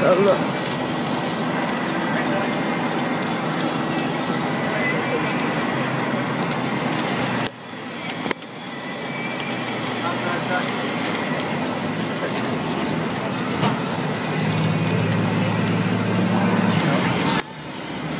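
A car engine hums and tyres rumble steadily on the road.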